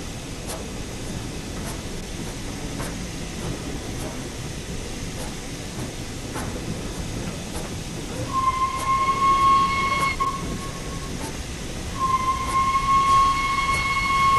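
Train wheels clack and rumble on the rails.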